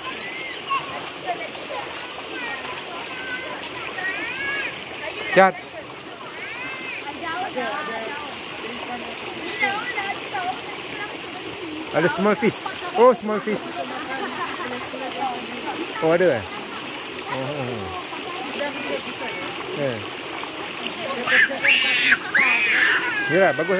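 Young children shout and squeal.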